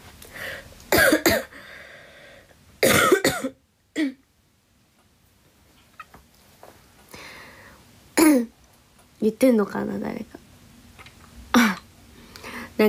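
A young woman speaks softly close to the microphone.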